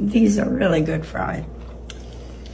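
An elderly woman talks with animation close by.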